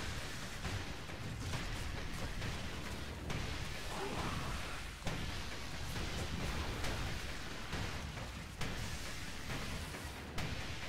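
Clicks and thuds of a video game battle sound steadily.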